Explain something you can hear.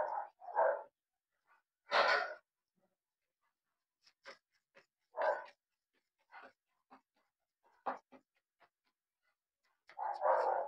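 A piece of cardboard is fanned in quick whooshing bursts.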